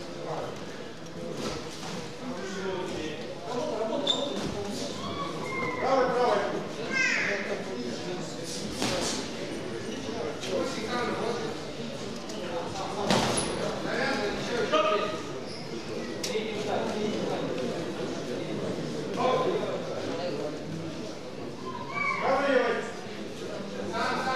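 Spectators shout and call out in an echoing indoor hall.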